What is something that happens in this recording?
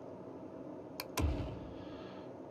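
A computer game's building sound clicks twice and thuds.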